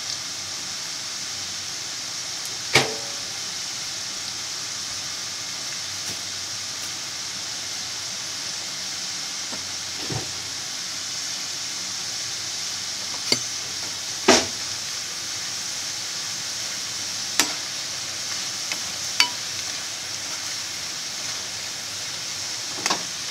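Oil sizzles and crackles steadily as food fries.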